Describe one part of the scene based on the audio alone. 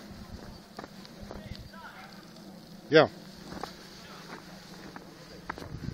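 A dog's paws crunch through deep snow.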